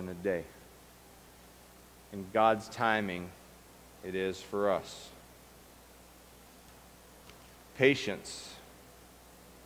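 A middle-aged man speaks calmly into a microphone in an echoing room, with pauses between phrases.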